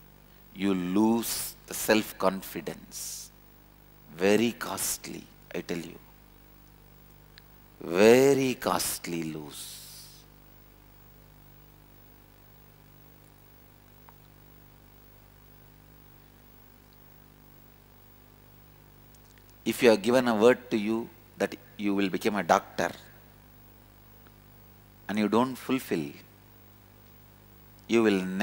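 A man speaks calmly into a close microphone, pausing at length between phrases.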